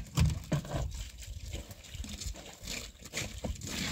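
Water pours from a plastic jug into a basin.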